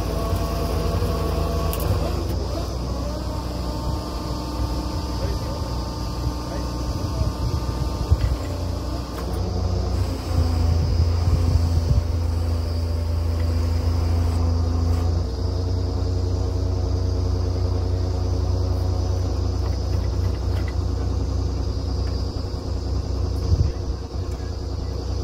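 A drilling rig's diesel engine runs loudly and steadily outdoors.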